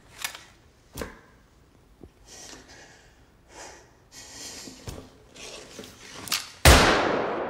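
A man rummages, with objects clicking and rustling close by.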